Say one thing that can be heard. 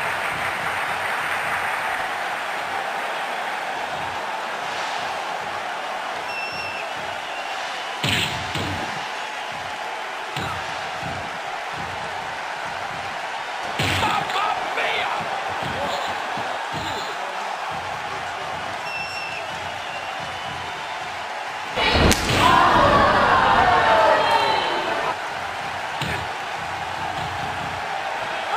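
A large crowd cheers steadily throughout.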